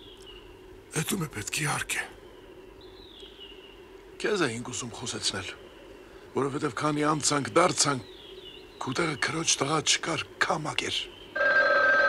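An elderly man speaks slowly and with feeling, in short bursts.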